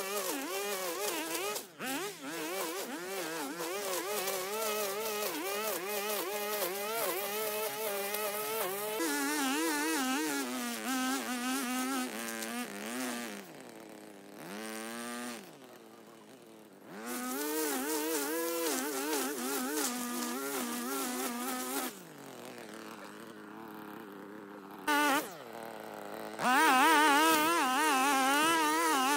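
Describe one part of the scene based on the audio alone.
A petrol string trimmer engine whines close by, revving up and down as it cuts grass.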